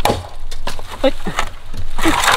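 A machete chops into bamboo with sharp knocks.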